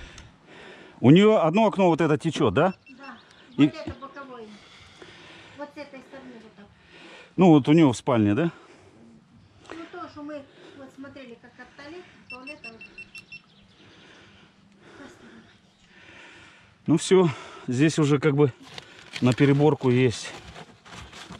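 A middle-aged man talks with animation close by.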